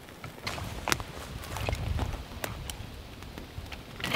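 Dry twigs snap and crack.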